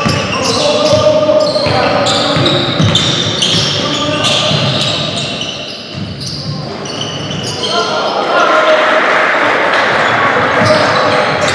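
A basketball bounces on the court as a player dribbles.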